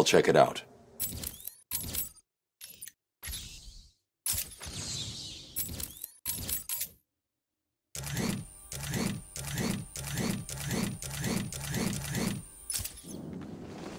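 Short electronic menu clicks and beeps sound in quick succession.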